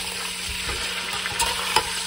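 A metal spoon scrapes against a pot.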